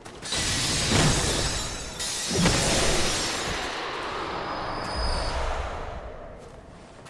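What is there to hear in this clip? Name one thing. A fiery blast roars and crackles, then slowly dies away.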